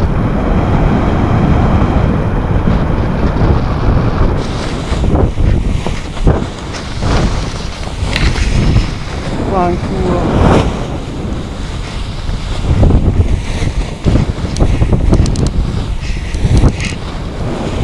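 Strong wind roars and buffets past.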